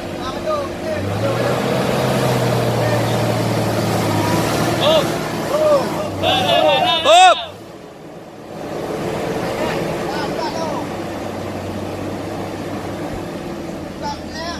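A jeep engine revs as its tyres churn in thick mud.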